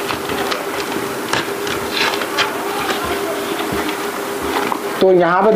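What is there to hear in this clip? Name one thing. Paper crinkles and rustles as hands fold it.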